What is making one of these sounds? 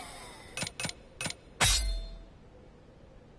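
Short game menu chimes click in quick succession.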